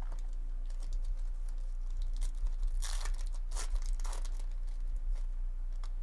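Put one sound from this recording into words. A foil card pack crinkles and tears open close by.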